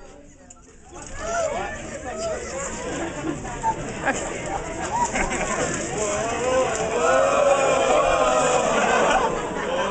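Several adults read out loud together.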